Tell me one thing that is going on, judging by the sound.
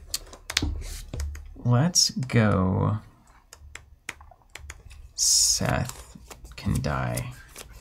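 Game cards click and rustle as they are handled.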